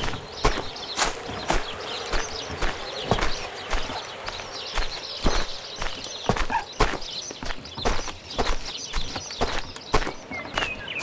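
A plough scrapes through soft soil.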